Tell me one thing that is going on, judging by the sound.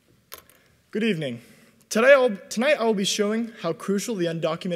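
A young man speaks calmly into a microphone, heard through loudspeakers in a large hall.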